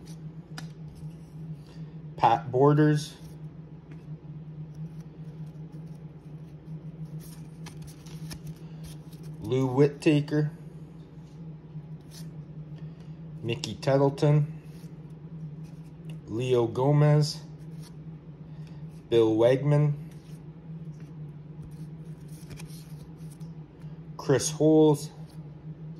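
Trading cards slide and flick softly against each other in hands.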